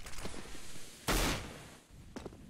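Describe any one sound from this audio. A smoke grenade bursts with a sharp hiss.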